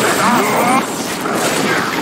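Electric energy crackles and fizzes.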